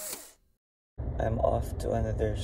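A young man speaks inside a car.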